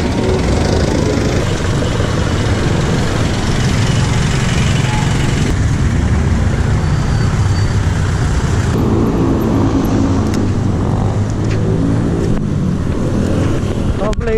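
Wind rumbles and buffets against a microphone on a moving bicycle.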